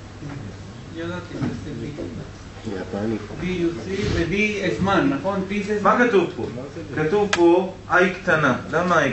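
A man lectures calmly.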